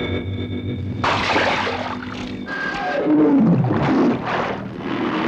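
Water splashes and waves crash.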